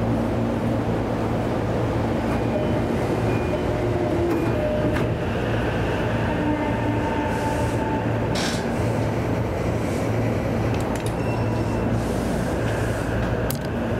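A passing train rushes by close alongside.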